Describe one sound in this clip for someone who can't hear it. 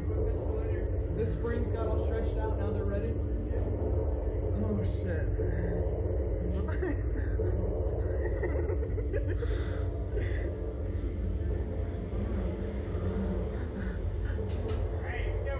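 Two young men talk and laugh close by.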